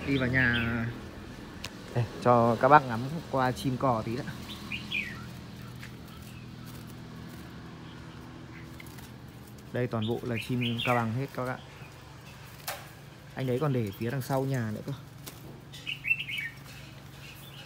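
Caged birds chirp and twitter nearby.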